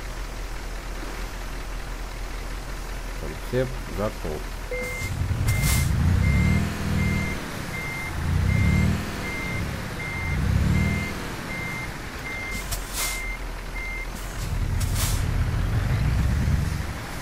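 A heavy truck engine idles and revs up and down repeatedly.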